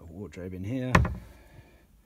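A door handle clicks.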